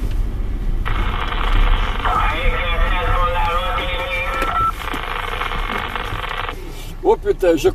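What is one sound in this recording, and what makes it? A car engine rumbles low as the car drives.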